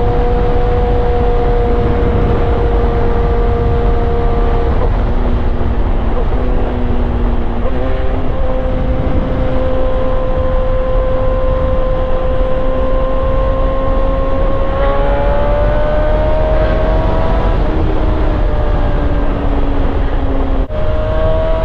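A motorcycle engine hums steadily and shifts in pitch as the bike speeds along.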